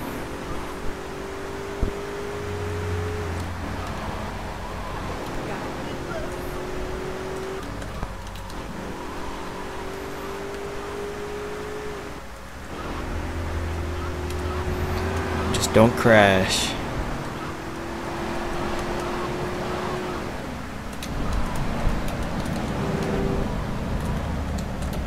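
A car engine revs again and again, rising in pitch as it speeds up through the gears.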